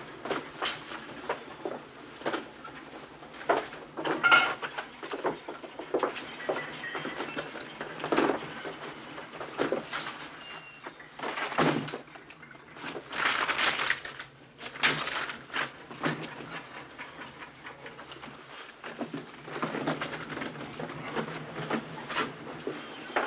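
Objects knock and rattle as an elderly man rummages about.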